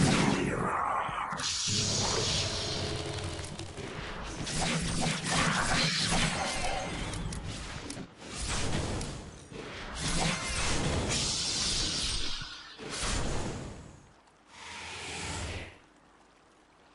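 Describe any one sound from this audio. Weapons clash and strike repeatedly.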